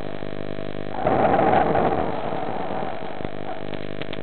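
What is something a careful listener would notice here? Air bubbles gurgle and rush underwater.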